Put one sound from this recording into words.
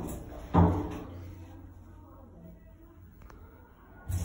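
Sliding metal doors roll shut with a soft thump.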